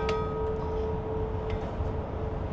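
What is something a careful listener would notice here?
A bell rings softly and fades.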